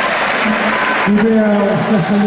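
A large crowd cheers and claps loudly.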